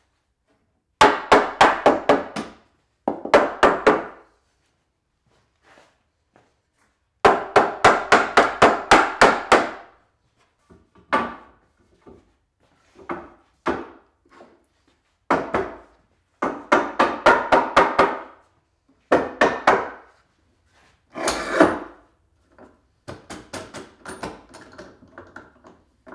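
A wooden mallet taps rapidly on boards in quick bursts.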